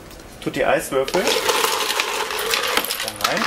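Ice rattles in a metal bucket.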